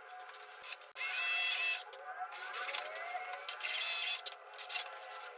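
A cordless drill whirs as it drives into wood.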